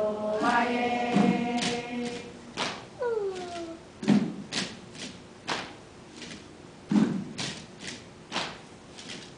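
Gourd shakers rattle in short, sharp bursts.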